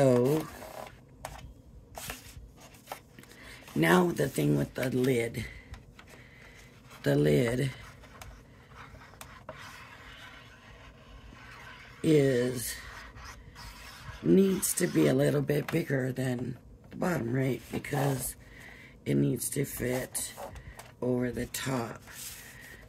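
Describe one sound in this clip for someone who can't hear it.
Stiff paper rustles and scrapes as it is handled.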